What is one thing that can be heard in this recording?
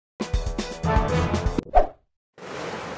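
Upbeat game music plays briefly.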